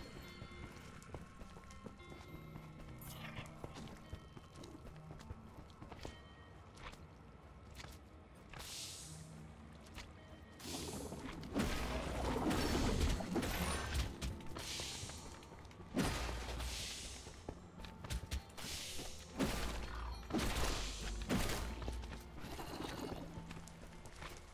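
Game music plays softly throughout.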